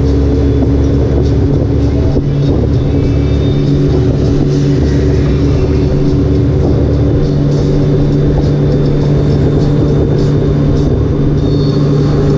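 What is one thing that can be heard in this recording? A motorcycle engine hums steadily at highway speed.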